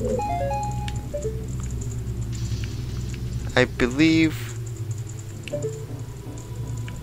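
Video game music plays steadily throughout.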